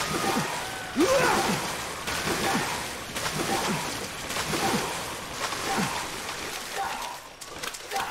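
Water splashes with swimming strokes.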